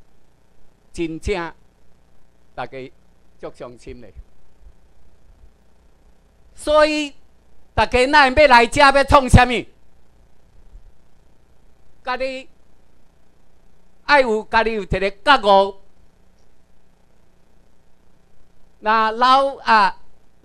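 A middle-aged man speaks into a microphone through loudspeakers, in bursts with pauses, in a room with some echo.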